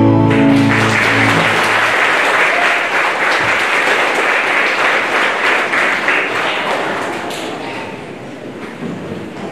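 A large audience applauds and cheers in an echoing hall, slowly fading.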